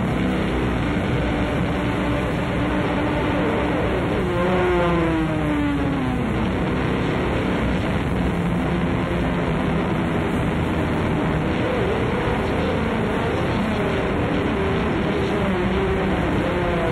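A distorted electric guitar plays loudly through amplifiers.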